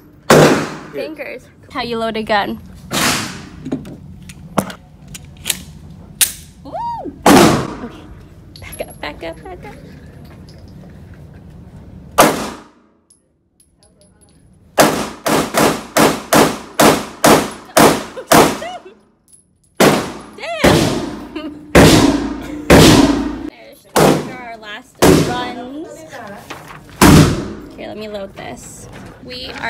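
Gunshots boom and echo sharply in a large hard-walled room.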